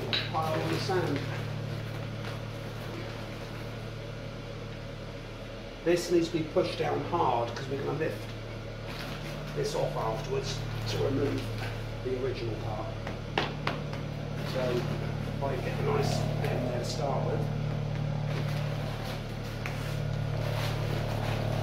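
A paper sack rustles as hands scoop sand out of it.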